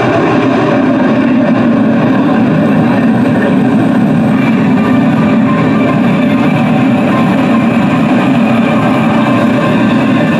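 A jet engine roars loudly overhead and slowly fades as the jet climbs away.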